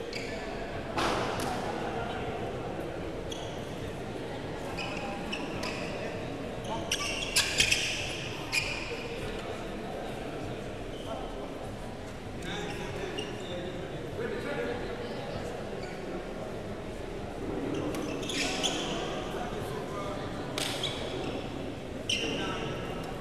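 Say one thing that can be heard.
Shuttlecocks are struck with sharp pops of badminton rackets.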